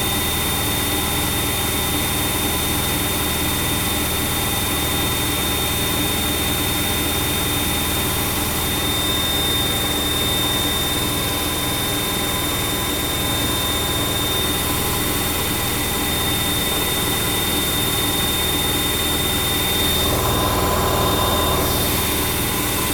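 A washing machine hums steadily.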